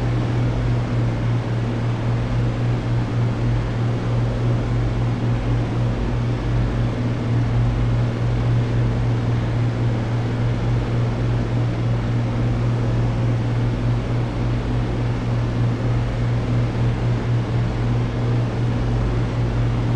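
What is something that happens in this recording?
An aircraft engine drones with a steady, deep hum.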